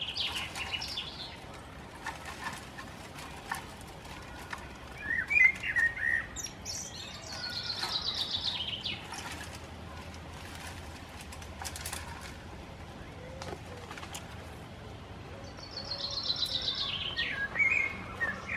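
Leafy branches rustle and twigs snap as a goat tugs at them.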